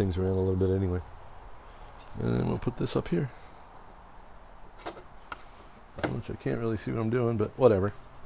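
Wooden boards knock softly together.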